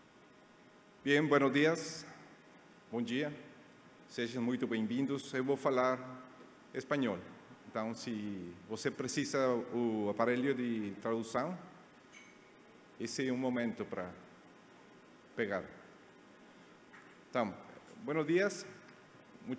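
A middle-aged man speaks calmly through a microphone in a large hall.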